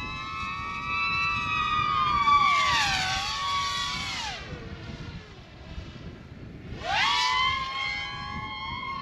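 A small drone's propellers whine loudly, rising and dropping in pitch as the drone swoops past twice.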